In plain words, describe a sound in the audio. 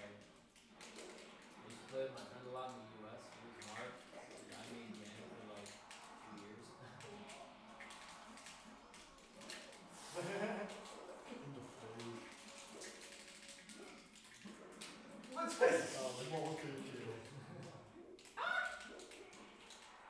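Young men talk casually in a room.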